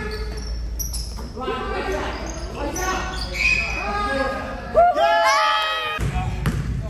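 Sneakers squeak sharply on a hard gym floor in a large echoing hall.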